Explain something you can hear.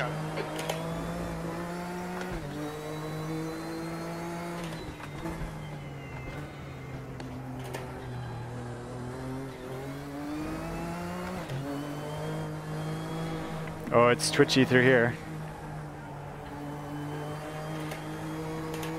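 A racing car engine drones and revs up and down through gear changes.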